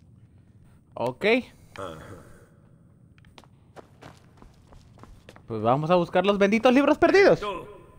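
A young man speaks loudly and with animation close to a microphone.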